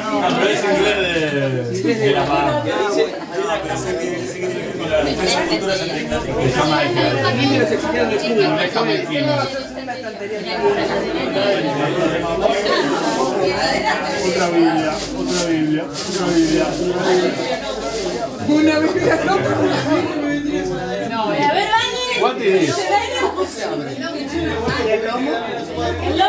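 Several men and women talk and chatter at once in a room with some echo.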